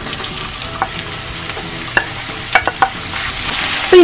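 Sliced onions tumble from a plate into a hot pan.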